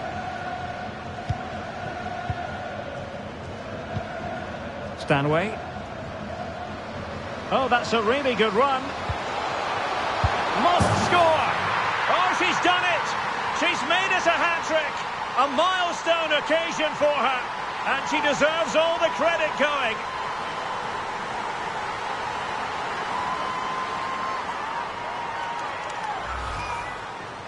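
A large crowd roars steadily and swells into loud cheering.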